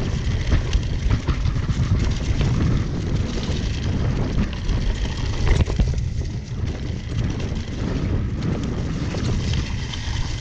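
Wind rushes past a microphone.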